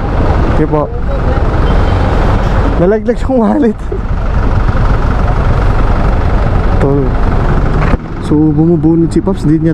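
Motorcycle engines idle and rumble close by in heavy traffic.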